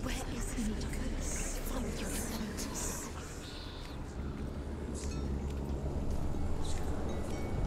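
Footsteps rustle through grass and dry twigs.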